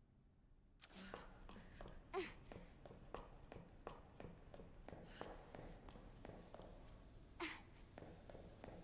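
Footsteps thud on a hard floor at a steady pace.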